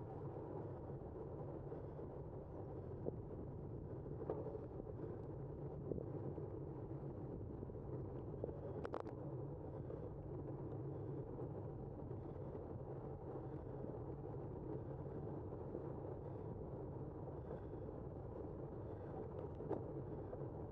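Wind rushes past steadily outdoors.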